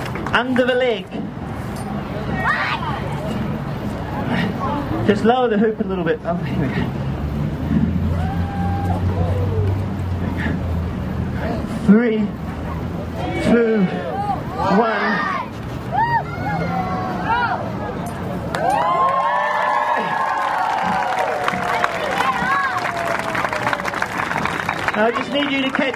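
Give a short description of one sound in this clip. A man talks loudly to a crowd outdoors.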